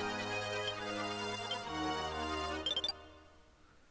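A video game melody plays with bright synthesized tones.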